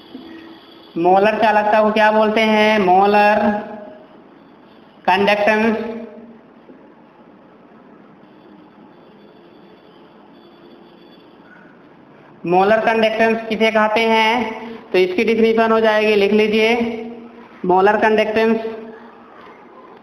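A man speaks in a lecturing voice, close by, in short bursts.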